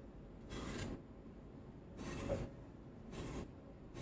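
A paintbrush strokes softly across wood.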